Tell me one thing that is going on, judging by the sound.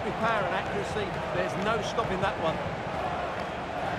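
A football is struck hard with a thud.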